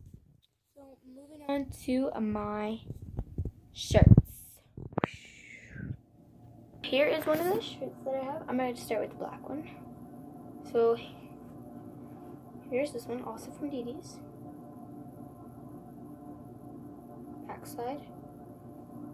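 A girl talks with animation close to a phone microphone.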